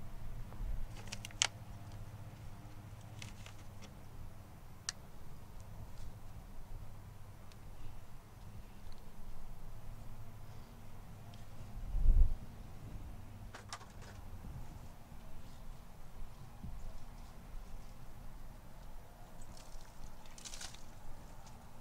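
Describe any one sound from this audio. Plastic plant pots crinkle and click as plants are pulled out.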